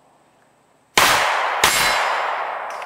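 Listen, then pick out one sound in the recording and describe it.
Two gunshots crack loudly and echo outdoors.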